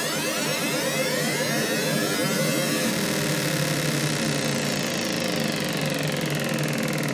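A synthesizer plays a steady buzzing tone whose brightness sweeps up and down.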